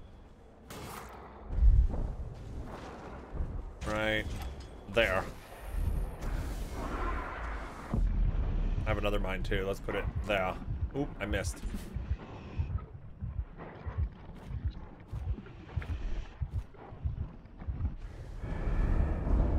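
Game sound effects whoosh and rumble throughout.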